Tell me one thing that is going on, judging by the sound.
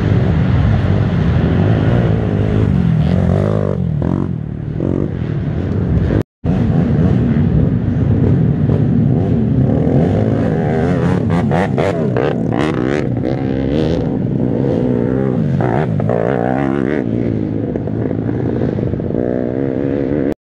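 A quad bike engine roars and revs up and down close by.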